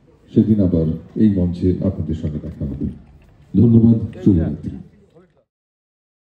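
A middle-aged man speaks into a microphone with animation, heard through a loudspeaker.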